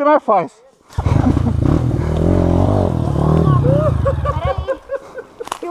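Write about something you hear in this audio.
A dirt bike engine revs loudly nearby.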